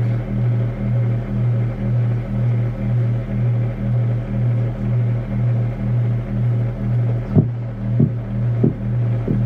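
A deep electronic bass throbs in a steady, even pulse.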